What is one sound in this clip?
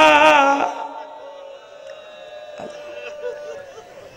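A young man chants loudly through a microphone in a reverberant hall.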